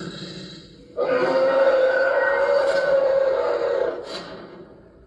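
A large creature roars loudly and long.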